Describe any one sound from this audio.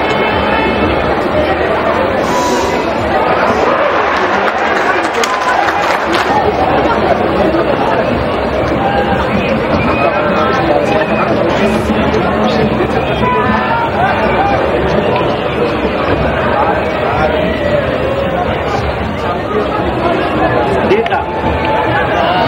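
A large stadium crowd cheers and chatters steadily, heard from a distance.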